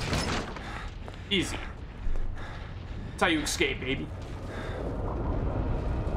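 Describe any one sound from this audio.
A man speaks tensely, with an echo.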